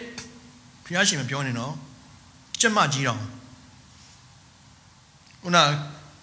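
A middle-aged man speaks with emphasis into a microphone, in short bursts with pauses, in a large echoing hall.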